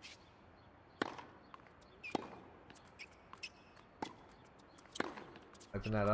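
A tennis ball is struck with sharp pops.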